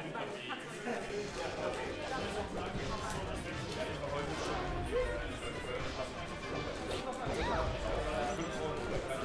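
Video game fighting sound effects play with hits and whooshes.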